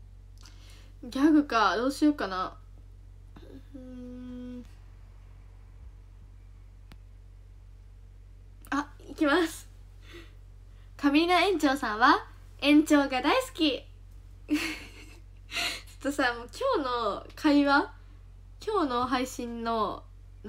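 A young woman talks animatedly, close to the microphone.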